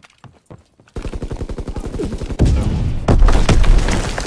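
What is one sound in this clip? Gunfire rattles in rapid bursts close by.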